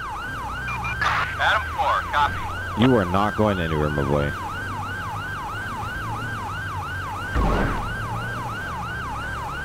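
A police siren wails steadily, rising and falling quickly.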